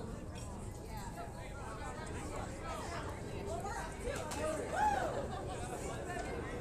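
Young people shout and cheer from across an open field.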